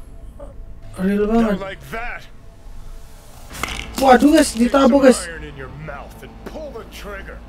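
A man's deep voice speaks gruffly and with menace.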